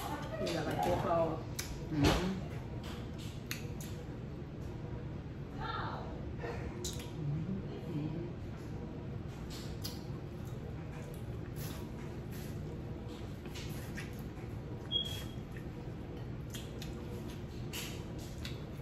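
Two women chew and smack their lips noisily.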